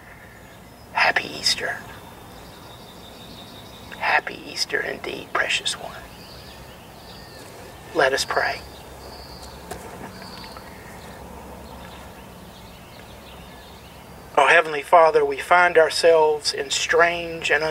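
A man speaks slowly and calmly into a clip-on microphone, with long pauses.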